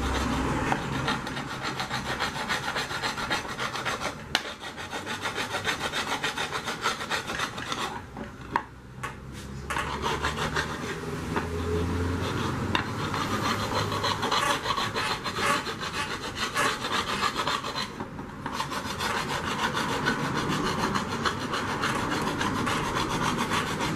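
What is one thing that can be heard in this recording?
A metal file scrapes rapidly back and forth along a knife blade.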